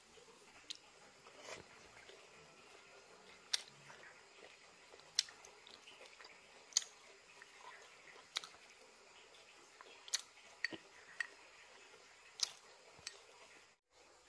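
A young woman chews food with loud, close mouth sounds.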